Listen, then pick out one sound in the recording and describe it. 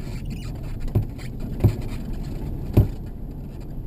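Loose stones knock against the underside of a car.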